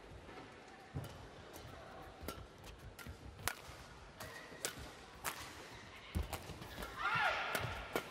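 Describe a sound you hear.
Shuttlecock hits crack sharply off rackets.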